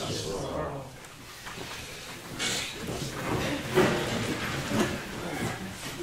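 Chairs scrape and creak as people sit down.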